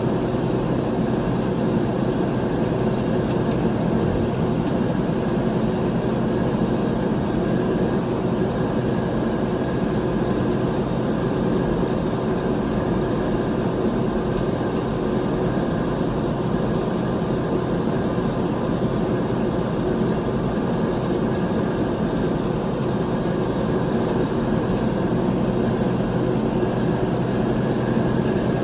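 A car engine hums steadily as the car drives along at speed.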